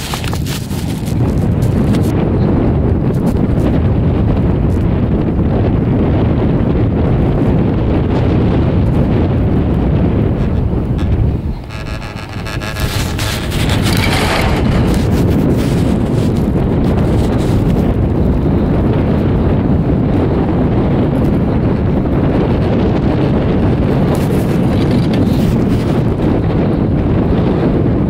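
Skis scrape and hiss steadily over packed snow.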